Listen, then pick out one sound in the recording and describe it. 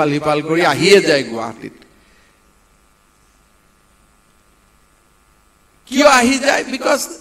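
A man speaks into a microphone.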